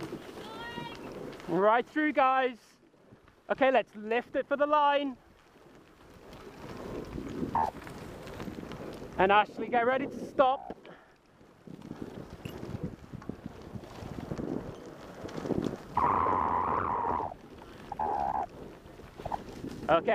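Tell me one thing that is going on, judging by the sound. Bicycle tyres roll and crunch over a gravel path.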